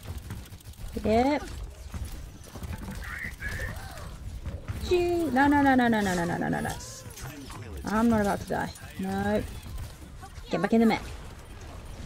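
A young woman speaks with animation, close to a microphone.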